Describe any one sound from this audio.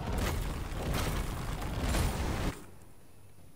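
A fire roars and crackles outdoors.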